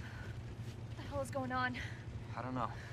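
A young woman asks a question anxiously.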